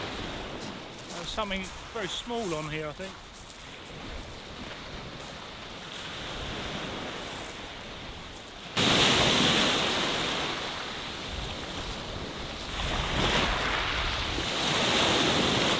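Waves wash and fizz over a pebble beach.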